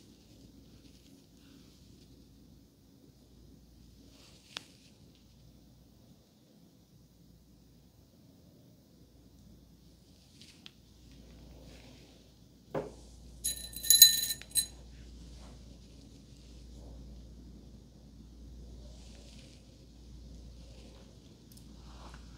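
A comb softly rustles and scratches through hair close by.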